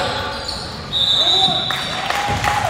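A referee's whistle blows a short, sharp blast.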